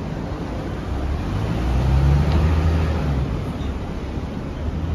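A car climbs a hill with its engine revving.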